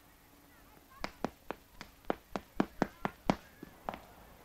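Footsteps hurry down stairs.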